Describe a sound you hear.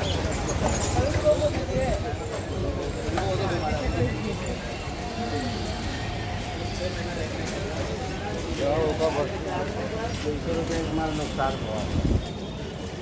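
Voices of a crowd chatter nearby outdoors in a busy street.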